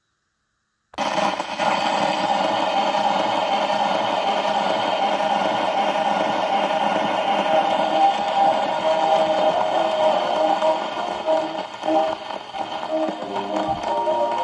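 A gramophone needle hisses and crackles on the spinning record.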